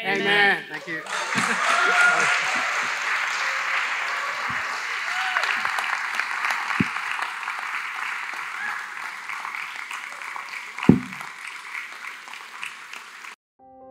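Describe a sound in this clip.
An audience applauds steadily, then slowly quiets.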